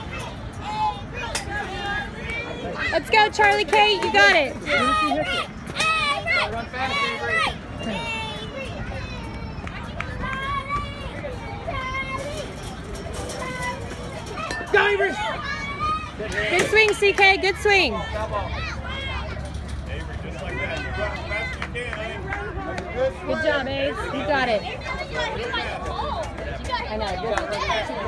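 A crowd of children and adults cheers and shouts outdoors.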